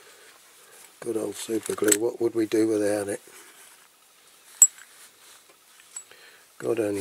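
Fingers handle a small plastic toy with light clicks and rustles.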